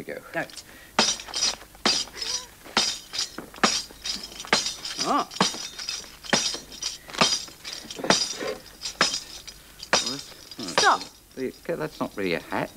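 A tambourine jingles in a steady rhythm.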